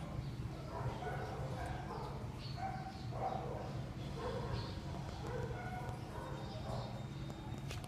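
Puppies whimper and squeak softly in their sleep.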